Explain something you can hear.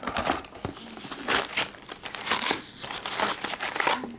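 A foil card pack crinkles in hands.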